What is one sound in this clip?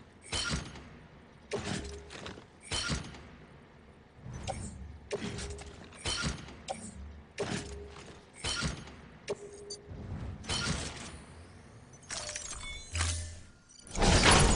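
Menu clicks and short chimes sound again and again.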